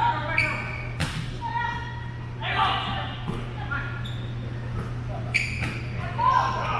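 A volleyball is struck with a sharp smack.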